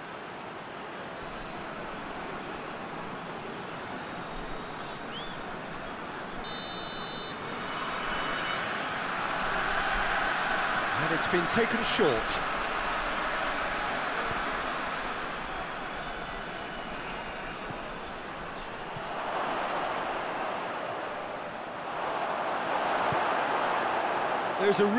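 A large stadium crowd roars and murmurs steadily, swelling at times.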